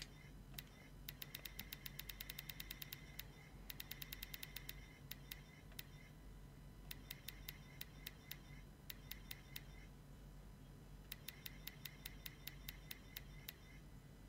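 Rapid soft electronic ticks click in bursts as a setting is adjusted.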